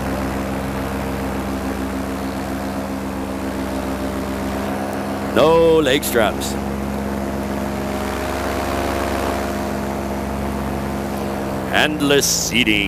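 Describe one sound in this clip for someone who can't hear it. A paramotor engine drones steadily close by.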